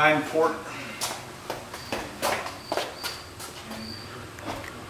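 Footsteps walk across a hard floor, moving away.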